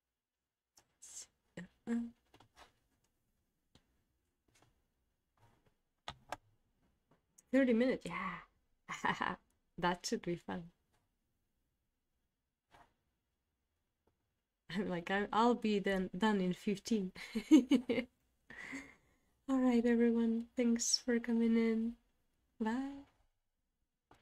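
A young woman speaks calmly and warmly into a close microphone, with pauses.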